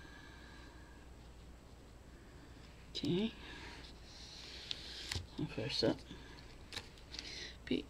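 Paper rustles softly under a hand.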